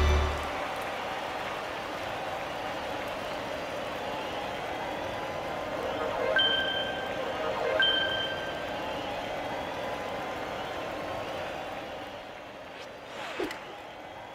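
A stadium crowd cheers and murmurs steadily.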